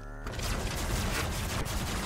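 A laser weapon fires with a sharp zap.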